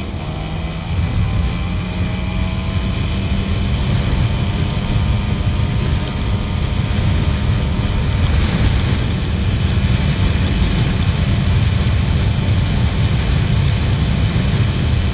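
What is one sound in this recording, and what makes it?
Wind rumbles loudly against the rider.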